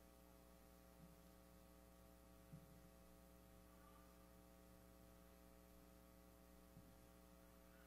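Soft knocks sound on a wooden lectern.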